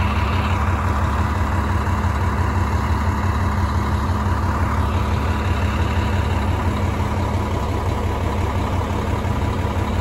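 A bus engine idles with a steady low rumble close by.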